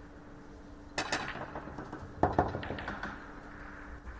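Snooker balls clack together sharply as they are set on a table.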